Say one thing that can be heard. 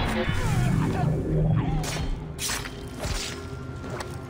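Heavy blows land in a close fight.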